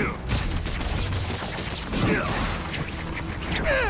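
Punches land with heavy thuds.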